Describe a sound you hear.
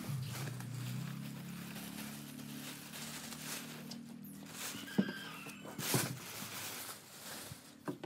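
A plastic sheet rustles and crinkles.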